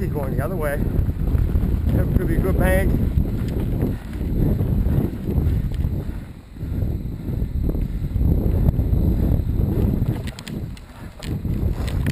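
Bicycle tyres roll and crunch over a bumpy dirt trail.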